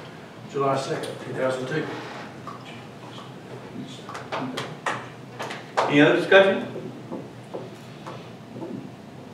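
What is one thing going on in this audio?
An elderly man speaks calmly into a microphone in a room with some echo.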